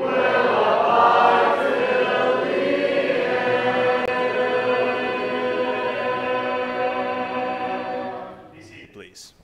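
A man sings a hymn through a microphone.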